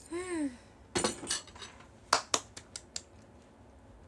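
A young girl claps her hands a few times.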